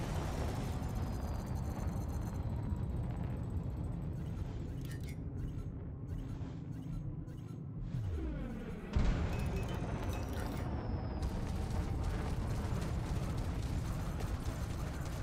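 A spaceship engine hums with a low, steady rumble.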